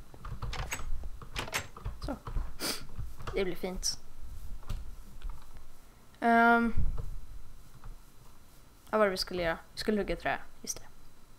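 A young boy talks with animation into a close microphone.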